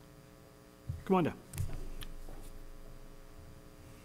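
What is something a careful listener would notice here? Footsteps thud softly on a hard floor.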